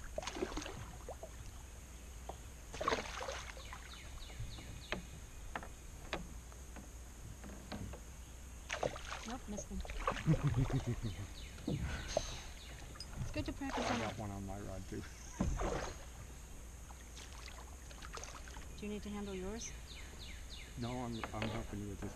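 A fishing reel clicks as line is reeled in.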